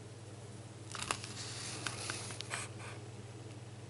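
A paper page rustles as it is turned.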